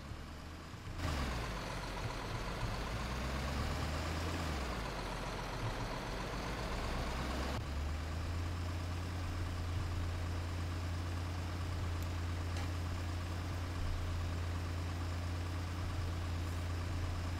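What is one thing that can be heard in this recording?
A diesel truck engine drones while driving.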